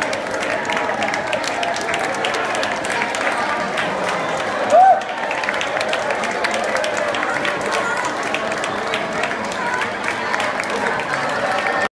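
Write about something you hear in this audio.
A crowd of men and women chatters and cheers loudly close by.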